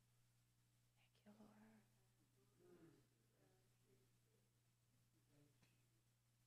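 A woman speaks softly and haltingly through a microphone.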